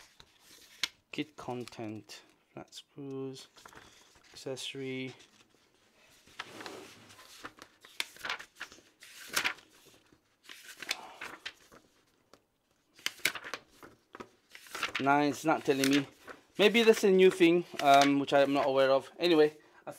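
A thin metal panel clicks and rattles as it is handled.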